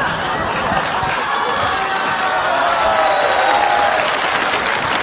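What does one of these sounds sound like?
A man speaks loudly into a microphone on a stage.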